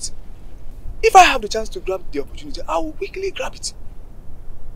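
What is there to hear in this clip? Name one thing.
A man speaks emphatically nearby.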